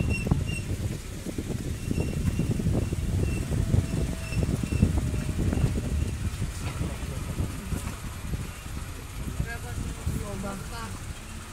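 Gusty wind blows hard outdoors, rumbling against the microphone.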